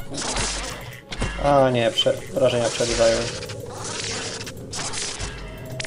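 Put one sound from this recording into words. An electric spell crackles and zaps in short bursts.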